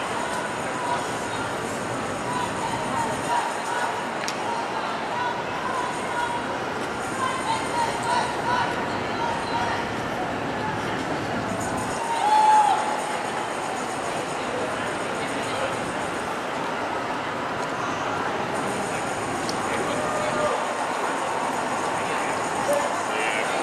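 Footsteps tap on the pavement close by.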